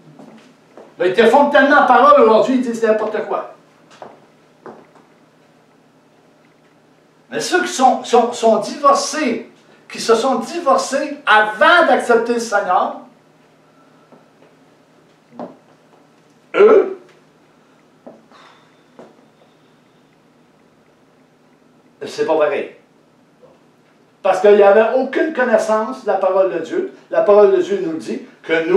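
A middle-aged man speaks with animation in a small room, pausing between phrases.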